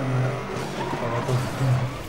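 A car crashes into another car with a loud crunch.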